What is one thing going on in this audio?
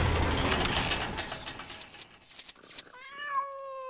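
Debris clatters and rattles as it scatters.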